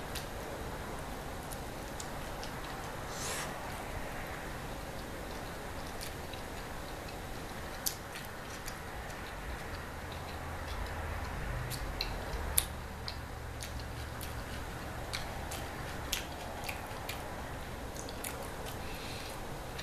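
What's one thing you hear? A woman chews with wet, smacking mouth sounds close to a microphone.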